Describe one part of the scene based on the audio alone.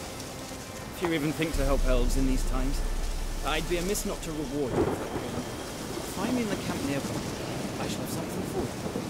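A young woman speaks nearby, pleading.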